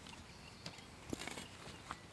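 A spade digs into grassy ground.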